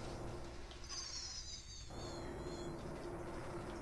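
A short electronic game sound effect sweeps down in pitch.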